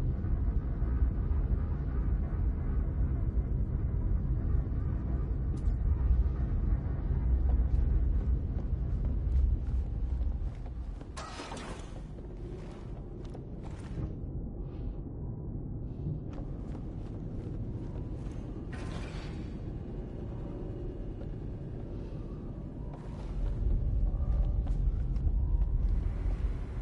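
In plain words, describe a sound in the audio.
A machine hums with a deep, steady low drone.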